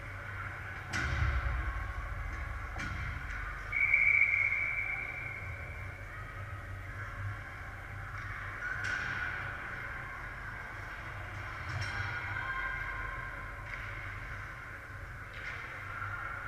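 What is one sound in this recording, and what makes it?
A hockey puck knocks against sticks and the boards.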